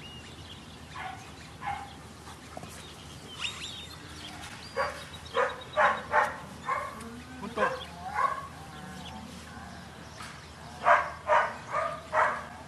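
A man calls out short commands loudly outdoors.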